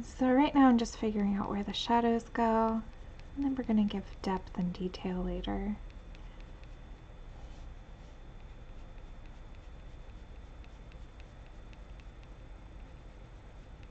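A colored pencil scratches softly on paper.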